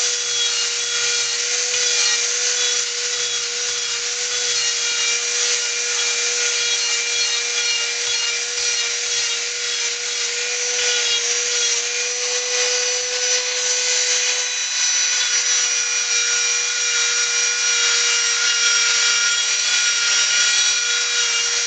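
A rotary tool bit grinds and sands into wood.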